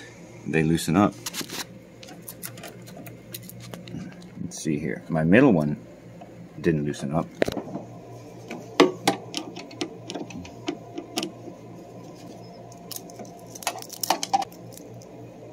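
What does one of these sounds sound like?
Small plastic and metal clicks sound as wires and connectors are handled close by.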